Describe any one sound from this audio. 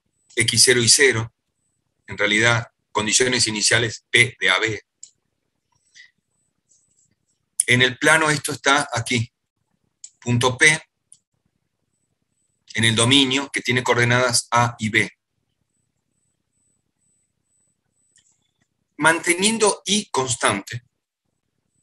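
An older man speaks calmly through an online call, in bursts with pauses.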